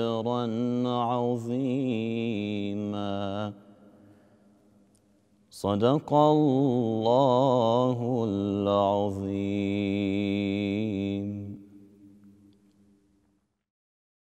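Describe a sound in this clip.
A man chants a melodic recitation into a microphone, echoing in a large hall.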